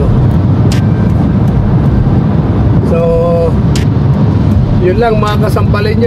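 A car engine hums and tyres rumble steadily on the road from inside the car.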